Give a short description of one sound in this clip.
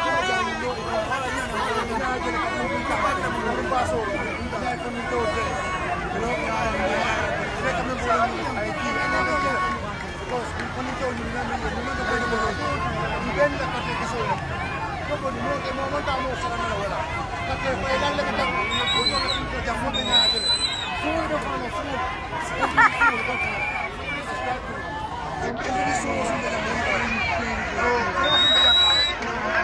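A crowd of men and women talks and shouts all around.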